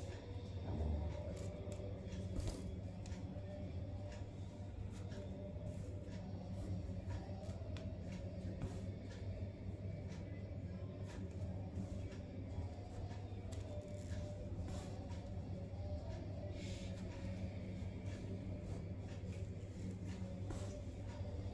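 Thread rustles and ticks softly against a sheet of plastic.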